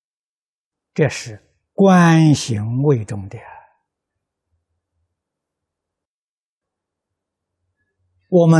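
An elderly man speaks calmly and close into a microphone.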